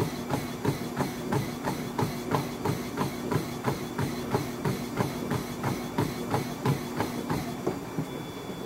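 Feet pound quickly and steadily on a running treadmill belt.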